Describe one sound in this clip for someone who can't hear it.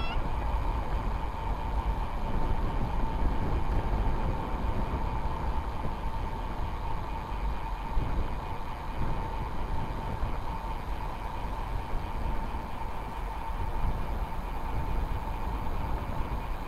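Wind rumbles loudly across a moving bicycle.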